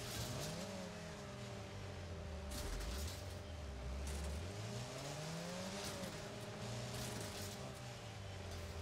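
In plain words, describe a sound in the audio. A small car engine revs up and down.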